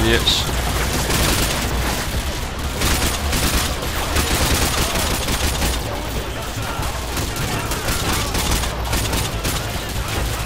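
Rifle shots fire in rapid bursts, echoing indoors.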